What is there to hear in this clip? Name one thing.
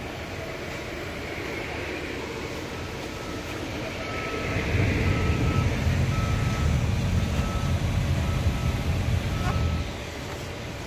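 A welding arc crackles and buzzes steadily.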